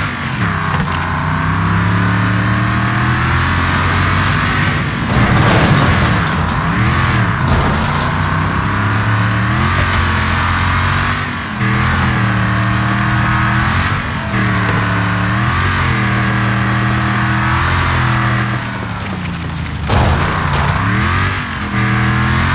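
A vehicle engine roars and revs, rising and falling in pitch as gears change.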